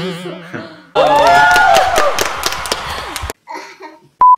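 Two young women laugh together.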